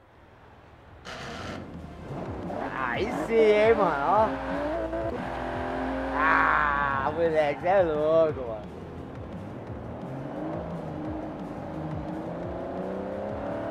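A car engine revs up and roars as it accelerates through the gears.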